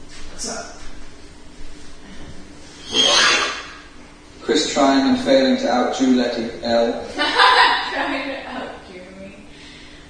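A man talks loudly at a distance in an echoing room.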